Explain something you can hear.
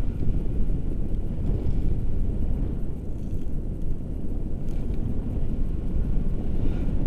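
Wind rushes and buffets loudly, as if in flight.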